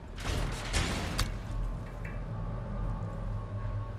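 A heavy wooden lid creaks open and thuds against its frame.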